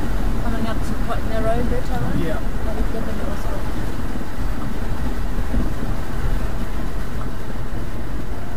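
A boat motor rumbles steadily, echoing off close stone walls.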